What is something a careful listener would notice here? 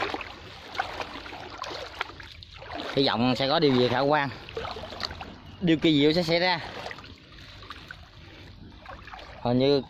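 Water sloshes as a man wades through a pond.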